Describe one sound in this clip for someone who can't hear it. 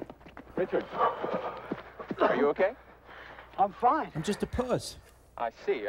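Men talk with animation, close by.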